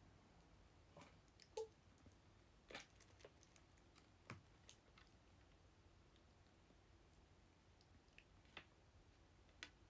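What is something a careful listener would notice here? Small objects tap and clatter close by.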